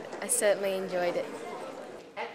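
A young woman speaks brightly and close by.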